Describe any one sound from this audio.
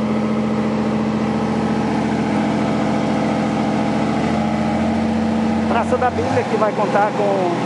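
A heavy paving machine's engine rumbles steadily nearby.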